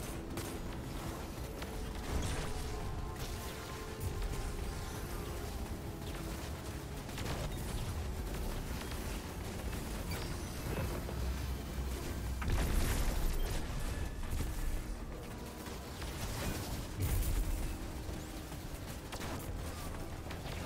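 Energy weapons fire in rapid bursts with buzzing blasts.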